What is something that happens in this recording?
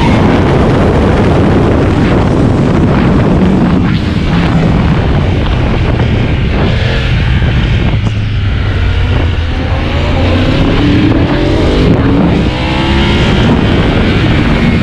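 Wind rushes hard past the rider.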